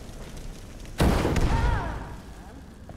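A fiery blast bursts with a loud whoosh.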